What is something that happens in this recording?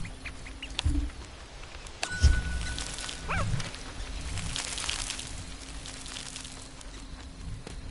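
Light footsteps patter softly as a small figure walks along.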